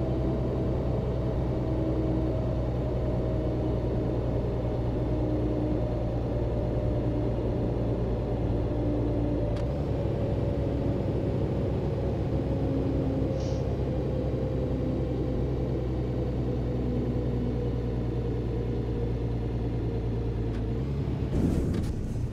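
A heavy truck engine drones steadily and slowly winds down as the truck slows.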